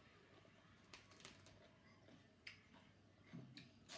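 Lettuce leaves crackle and crunch as they are torn.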